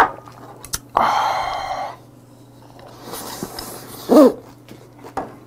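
A man slurps food loudly, close by.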